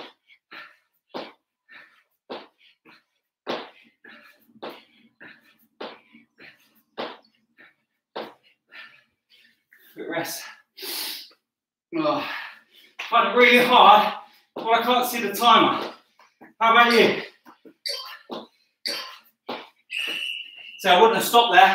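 A man's feet thump softly on an exercise mat in quick repeated steps.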